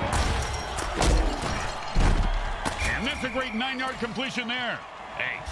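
Armored players collide with heavy thuds.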